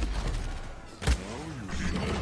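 A game weapon fires a single sharp blast.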